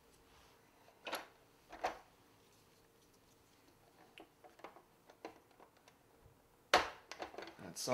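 Plastic toy parts click and knock as they are handled and fitted together.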